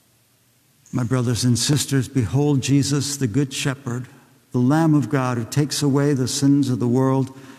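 A man chants loudly in a large echoing hall.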